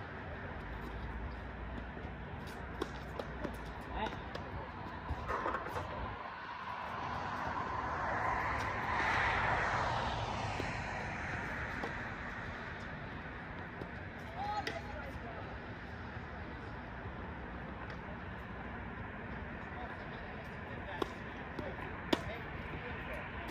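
Tennis balls pop off rackets with sharp hits.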